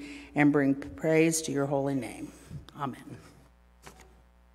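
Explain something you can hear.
A middle-aged woman reads out calmly through a microphone in a large echoing hall.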